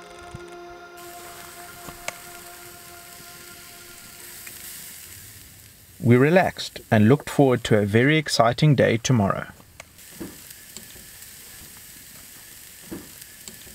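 Meat sizzles on a hot grill.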